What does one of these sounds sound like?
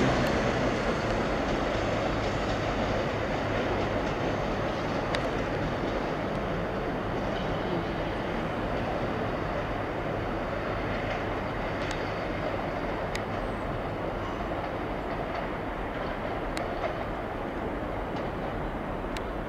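A train rumbles steadily along the tracks in the distance.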